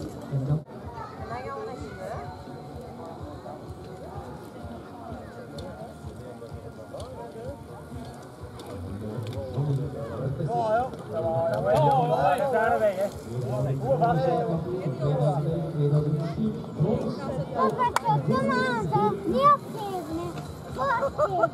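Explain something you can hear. Adult men and women talk nearby outdoors.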